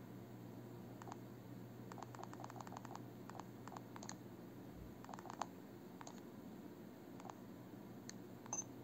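Short electronic menu blips sound in quick bursts.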